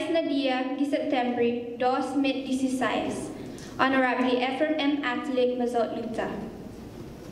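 A young girl sings clearly into a microphone.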